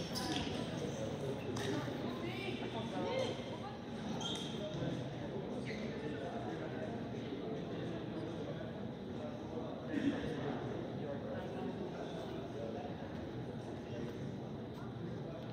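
A group of young men talk together in the distance.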